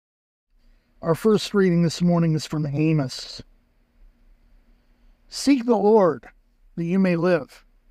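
A young man speaks calmly and clearly, close to a microphone.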